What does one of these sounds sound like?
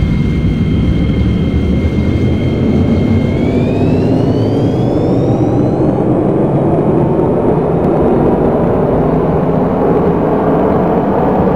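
A train rumbles along the tracks, speeding up.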